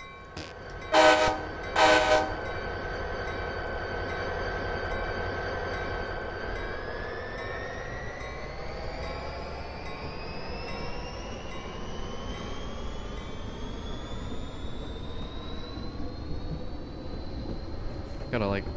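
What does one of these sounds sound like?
A diesel locomotive engine hums steadily, then rises in pitch as the train pulls away.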